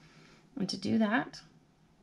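A marker squeaks softly across paper.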